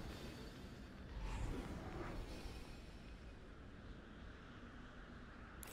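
An aircraft engine rumbles steadily.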